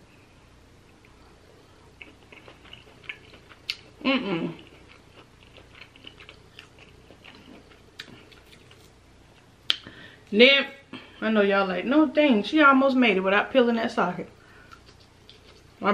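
A young woman chews food with soft wet mouth sounds.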